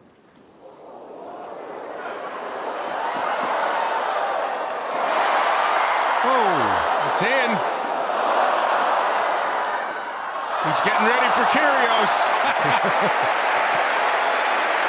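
A large crowd cheers and applauds loudly, swelling and then holding.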